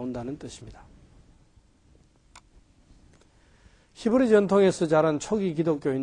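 An elderly man lectures calmly into a microphone.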